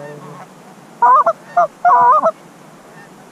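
Geese honk loudly nearby as they fly over outdoors.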